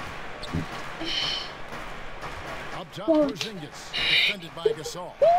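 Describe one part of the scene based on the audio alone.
Sneakers squeak on a basketball court.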